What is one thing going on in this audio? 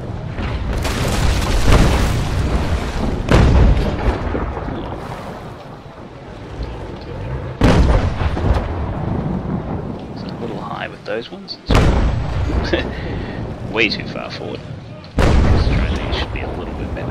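Cannons fire with loud, deep booms again and again.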